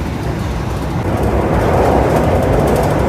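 A train rattles louder as it crosses a metal bridge.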